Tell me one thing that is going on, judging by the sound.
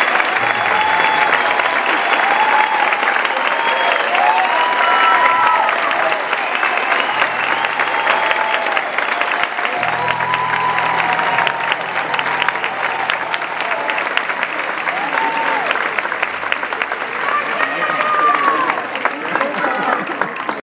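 A band plays lively folk music.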